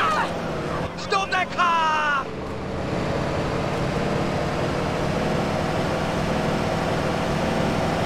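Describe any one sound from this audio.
A car engine roars as the car drives at speed.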